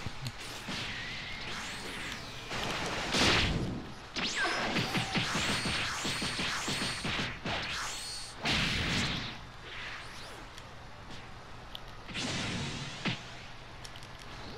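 Energy blasts whoosh and crackle in rapid bursts.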